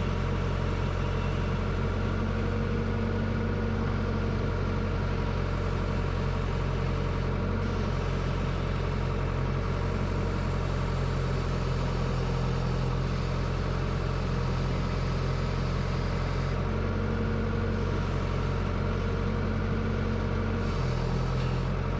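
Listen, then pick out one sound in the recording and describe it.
A diesel excavator engine hums steadily close by, its pitch shifting as the hydraulics work.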